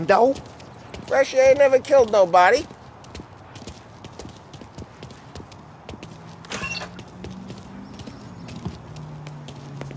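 Footsteps walk over hard ground.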